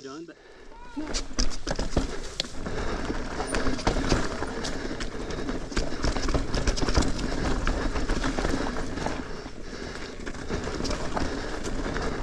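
A mountain bike rattles and clatters over a bumpy dirt trail, heard up close.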